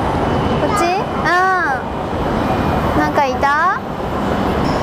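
A young child calls out excitedly nearby.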